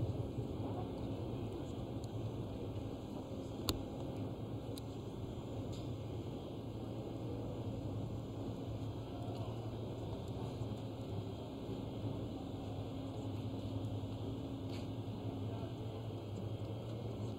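The machinery of a drawbridge hums steadily as the span lowers.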